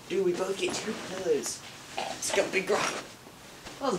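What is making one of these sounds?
A heavy armchair scrapes and bumps as it is shifted.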